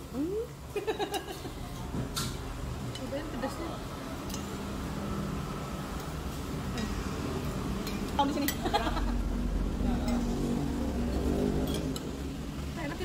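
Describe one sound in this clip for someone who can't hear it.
Spoons and forks clink against plates.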